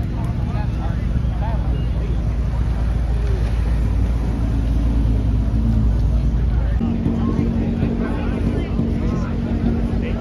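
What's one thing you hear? Car engines idle and rumble loudly close by.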